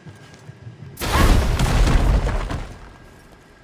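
A large stone block shatters with a loud crash.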